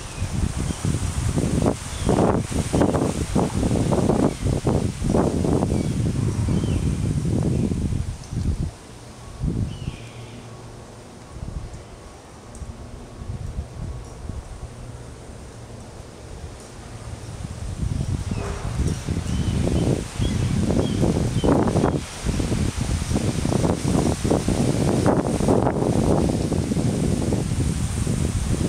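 Wind gusts outdoors, rumbling in strong bursts and easing off in between.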